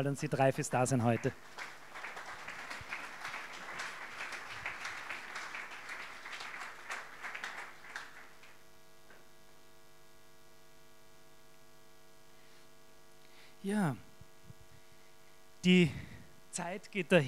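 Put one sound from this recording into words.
A man speaks through a loudspeaker in a hall.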